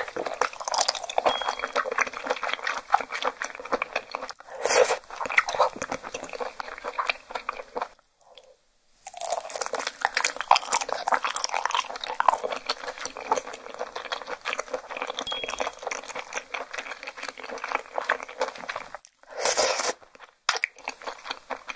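A young woman chews and slurps food wetly, close to a microphone.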